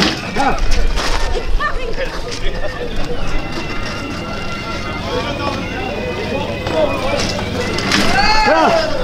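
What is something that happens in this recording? A crowd of men shout and call out outdoors.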